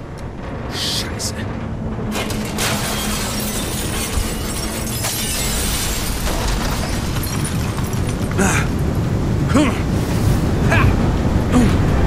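Strong wind roars through a sandstorm and grows louder.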